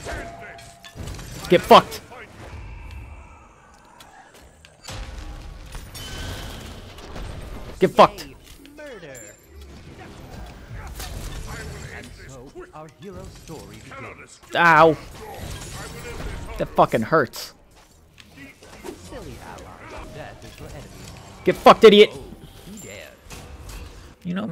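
Loud magic blasts and impacts burst in a fast fight.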